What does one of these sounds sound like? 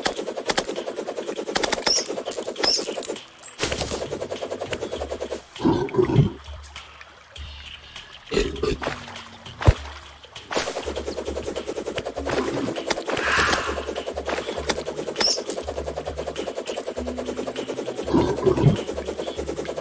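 A weapon swishes in quick repeated strikes.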